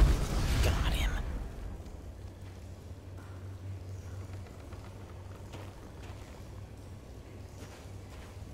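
Magic spells crackle and hum softly.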